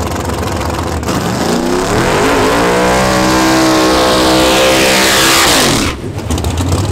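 A car engine revs hard and roars, rising in pitch.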